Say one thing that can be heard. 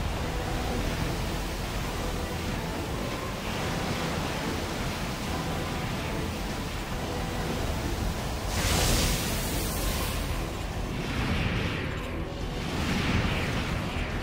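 A robot's thruster jets roar.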